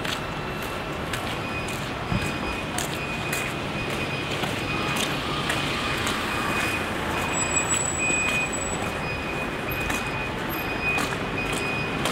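Footsteps tap steadily on a paved sidewalk.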